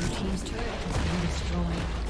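A game tower collapses with a loud crash.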